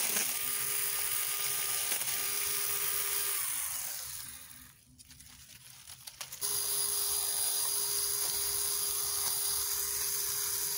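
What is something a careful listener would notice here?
Dry leaves rustle and crunch underfoot and under a hand tool.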